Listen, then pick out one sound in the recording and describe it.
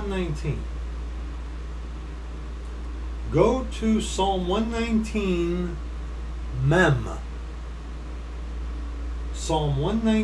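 A middle-aged man speaks with animation in short bursts, close to a microphone.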